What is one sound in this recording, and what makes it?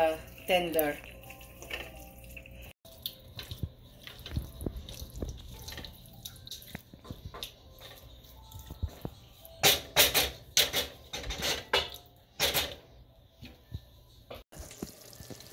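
A wooden spoon stirs a thick curry and scrapes a metal pan.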